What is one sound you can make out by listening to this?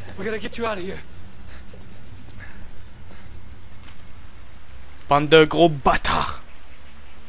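A young man speaks tensely and urgently.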